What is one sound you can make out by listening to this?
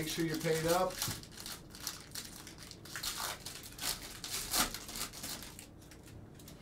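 A foil card pack crinkles and rustles as hands tear it open.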